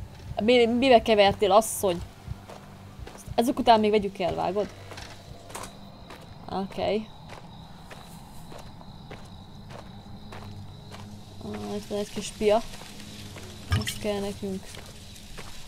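A young woman talks animatedly into a microphone, close by.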